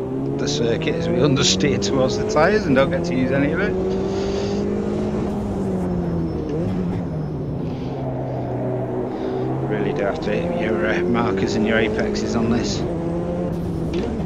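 A race car engine roars steadily, rising and falling in pitch as it shifts and brakes.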